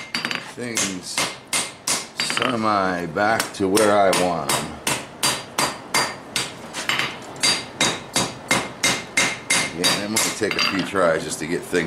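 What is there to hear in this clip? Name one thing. A hammer rings in quick, steady blows on an anvil.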